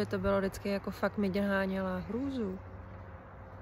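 A woman speaks close to the microphone.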